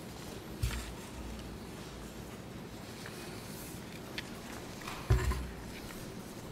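Paper rustles as pages are turned close by.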